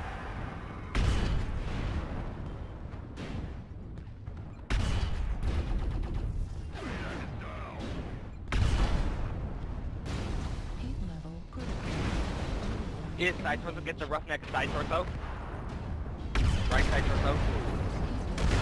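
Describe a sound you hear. Explosions boom on a heavy mech's armour.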